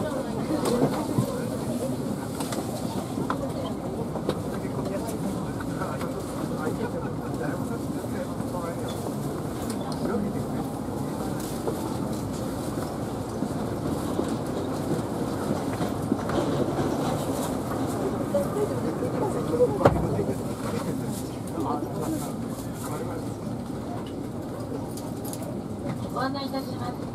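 Passengers chatter quietly nearby.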